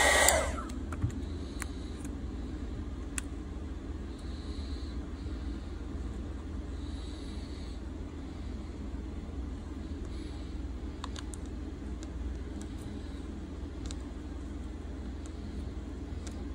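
A plastic pick scrapes and clicks along the edge of a phone.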